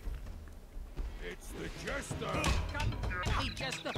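Blows thud and clash in a cartoon brawl.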